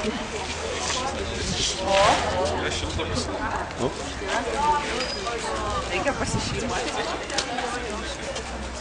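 Several people talk and call out nearby outdoors.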